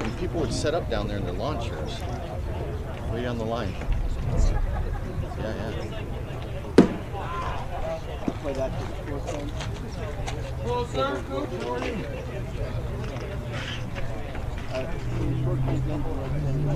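Men talk calmly nearby.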